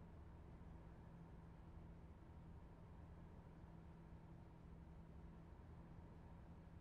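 A locomotive engine hums steadily at idle.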